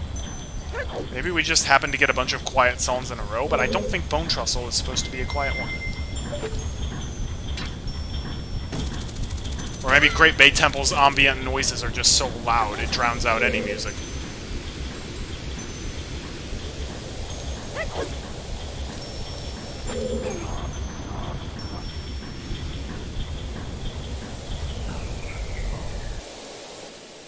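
Video game music plays steadily.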